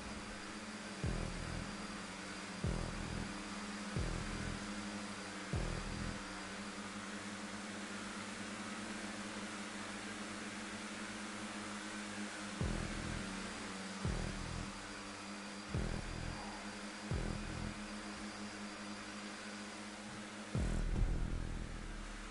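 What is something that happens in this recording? Other race cars roar past close by.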